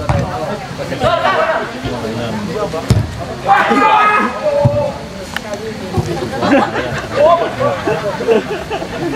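Young men shout to each other outdoors.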